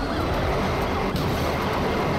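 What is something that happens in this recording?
A car crashes into a police car with a loud crunch.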